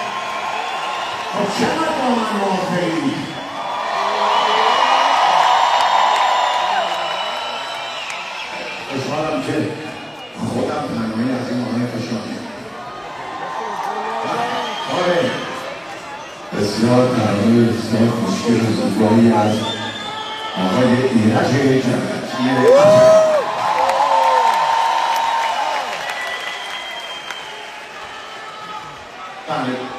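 A crowd of people sings along loudly.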